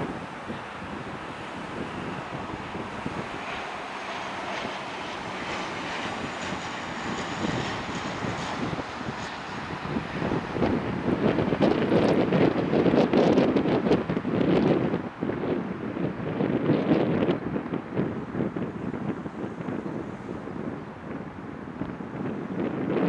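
A propeller plane's engines drone loudly as it flies low overhead.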